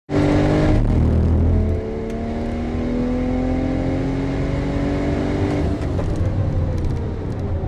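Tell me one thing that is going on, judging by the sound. A car engine roars loudly from inside the cabin, its pitch rising and falling with gear changes.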